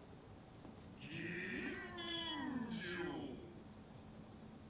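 A deep, distorted voice speaks slowly and menacingly.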